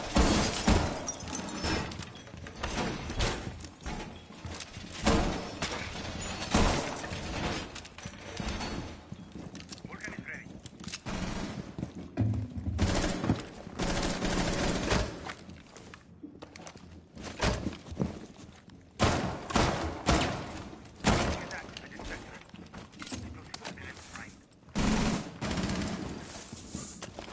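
Footsteps thud across a hard floor.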